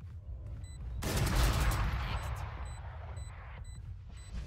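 An automatic rifle fires a burst in a video game.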